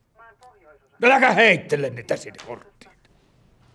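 An elderly man shouts loudly and angrily.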